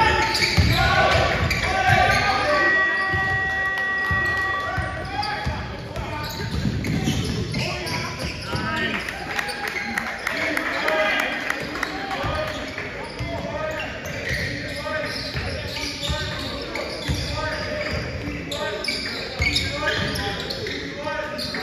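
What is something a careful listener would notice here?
Spectators chatter and cheer in an echoing gym.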